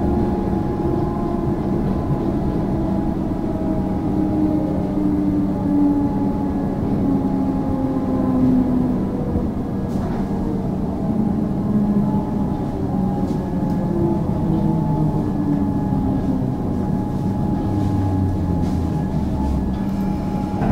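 A train's motor whines, its pitch slowly shifting as it slows.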